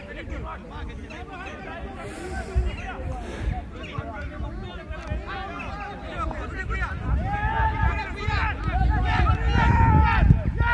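Many people shout and call out outdoors.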